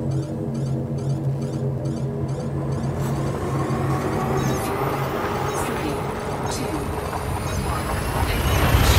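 A spaceship engine hums steadily, then swells into a rising, rushing roar.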